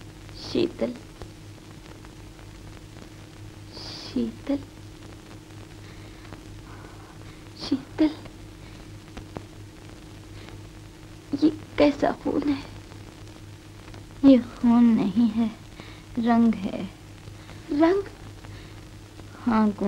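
A woman speaks softly and haltingly, with long pauses between phrases.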